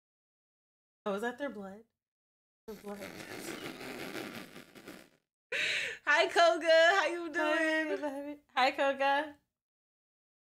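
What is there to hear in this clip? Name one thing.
A young woman talks and laughs with animation close to a microphone.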